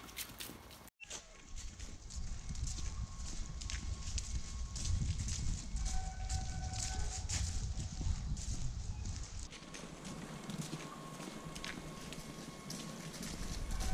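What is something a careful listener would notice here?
Footsteps crunch on dry fallen leaves.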